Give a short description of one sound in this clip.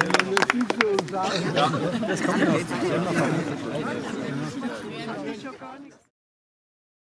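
A crowd of adults chatters and murmurs nearby.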